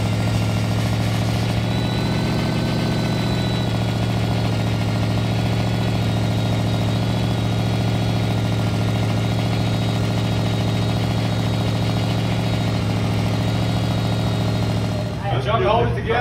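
An engine idles with a low, steady rumble.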